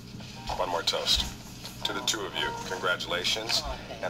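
A woman answers briefly through a television speaker.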